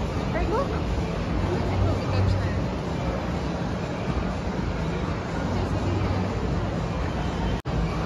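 An escalator hums.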